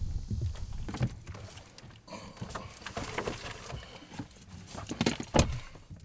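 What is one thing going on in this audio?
Clothes rustle against a car seat as a man climbs in.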